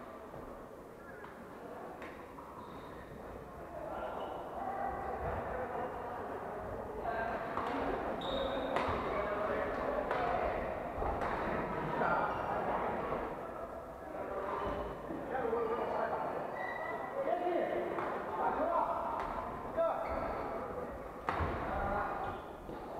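Men talk and call out at a distance in a large echoing hall.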